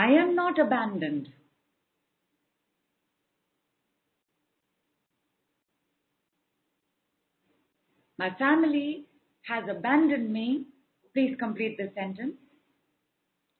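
A woman speaks calmly into a close microphone, with long pauses.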